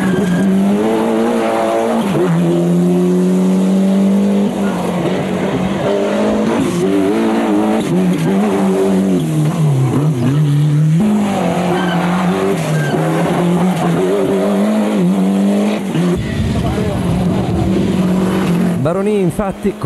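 A rally car engine roars loudly, its pitch rising and falling as it speeds by.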